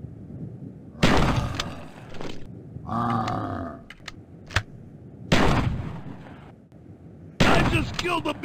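Loud shotgun blasts boom, each followed by a ringing echo.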